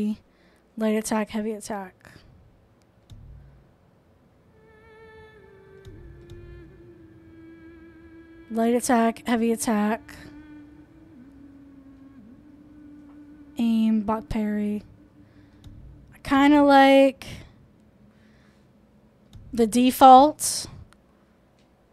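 Controller buttons click softly.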